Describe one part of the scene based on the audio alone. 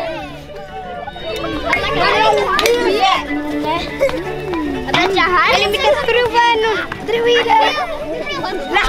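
Young children chatter and call out excitedly close by.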